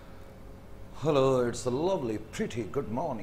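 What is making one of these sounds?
A middle-aged man speaks calmly into a clip-on microphone, close by.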